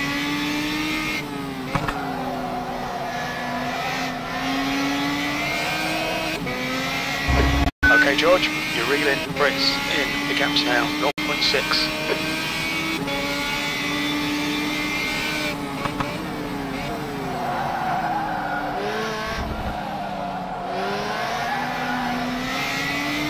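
A racing car engine roars steadily, its pitch rising and falling with gear changes.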